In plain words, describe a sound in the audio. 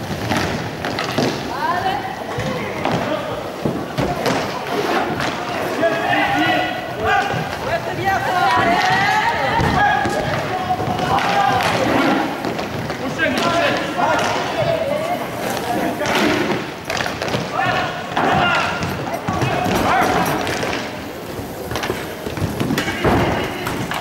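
Young men shout and call out to each other across the echoing hall.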